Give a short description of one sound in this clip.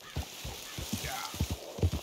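Leaves and branches rustle as a horse pushes through brush.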